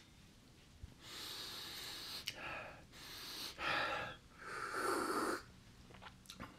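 A man slurps coffee.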